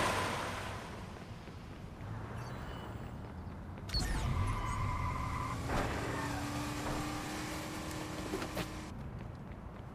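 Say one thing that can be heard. Cars drive past on a highway.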